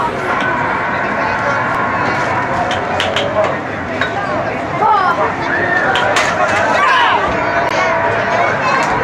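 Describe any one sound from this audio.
A crowd of adults and children chatter outdoors.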